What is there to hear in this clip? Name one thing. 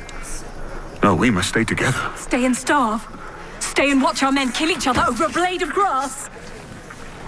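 A bearded middle-aged man speaks forcefully, close by.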